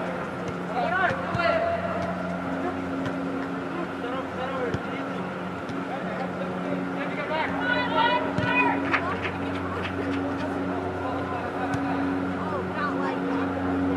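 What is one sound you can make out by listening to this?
Young players shout to one another across a large echoing hall.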